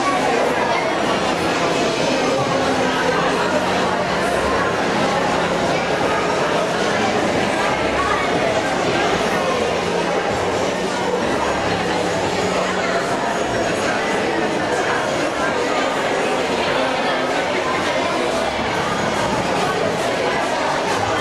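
A large crowd of adults and children chatters loudly in an echoing hall.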